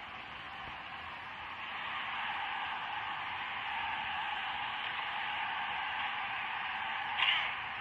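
A crowd cheers steadily throughout.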